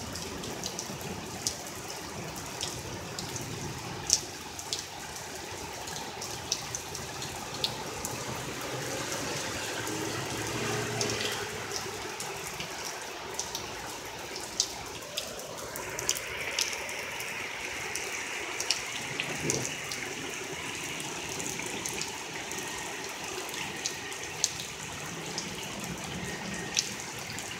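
Rain pours down steadily outdoors, with drops pattering and tapping close by.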